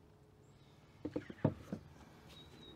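A canvas knocks against a tabletop as it is lifted and tilted.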